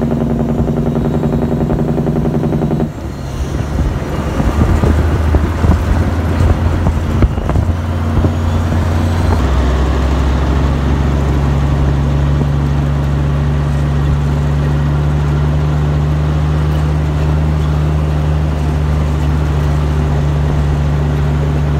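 Tyres squelch and rattle over a rutted muddy track.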